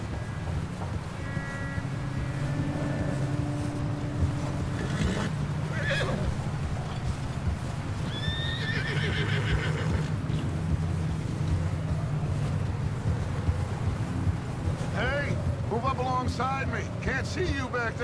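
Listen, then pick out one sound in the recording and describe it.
Wind howls in a snowstorm.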